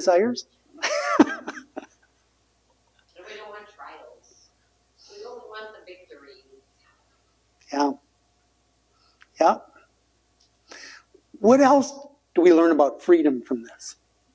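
An elderly man speaks calmly, pausing between phrases.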